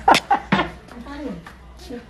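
A middle-aged woman laughs.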